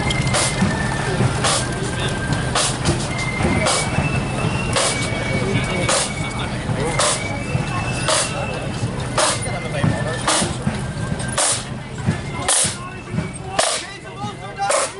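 A marching band of snare drums plays a loud, steady rhythm close by.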